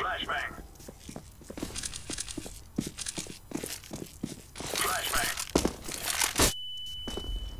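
Quick footsteps run on hard ground.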